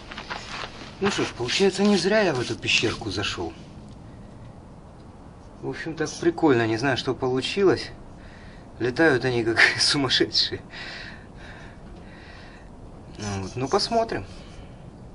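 A middle-aged man speaks calmly and cheerfully close by.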